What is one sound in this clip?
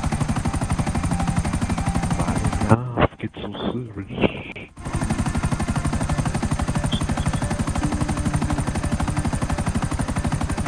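A helicopter's rotor thumps fast and steadily.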